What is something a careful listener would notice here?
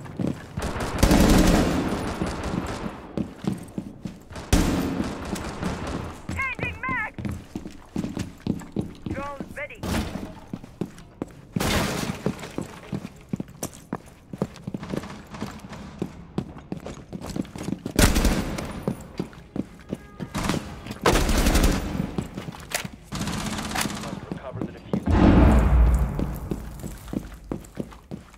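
Footsteps thud quickly and steadily.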